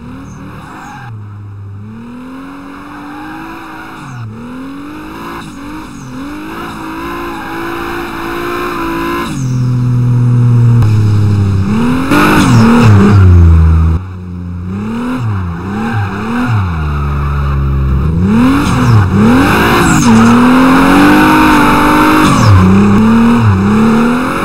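A sports car engine revs hard, rising and dropping in pitch as the gears shift.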